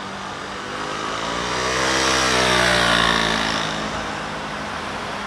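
A car drives past close by, rising and then fading.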